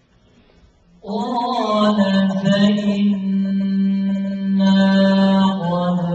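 A young man chants loudly and melodiously into a microphone.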